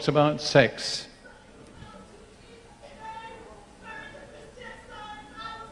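An elderly man speaks into a microphone to an audience, his voice carried over loudspeakers in a hall.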